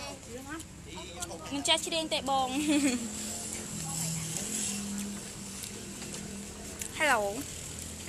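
A group of men and women chatter and laugh nearby.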